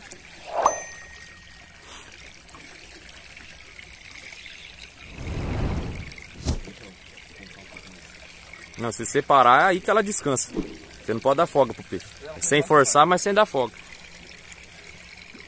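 A fishing reel whirs as line is wound in.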